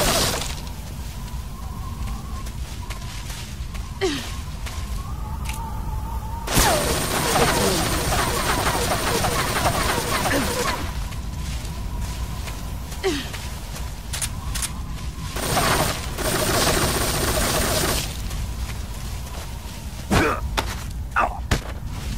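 Leaves and grass rustle as a figure pushes through undergrowth.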